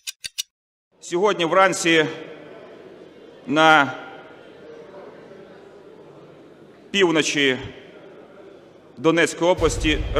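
A man speaks formally into a microphone in a large echoing hall.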